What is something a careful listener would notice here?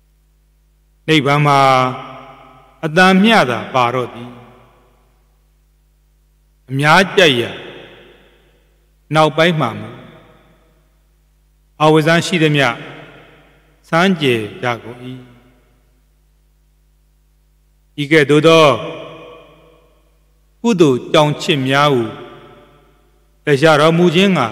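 A man chants slowly into a microphone in short phrases with pauses.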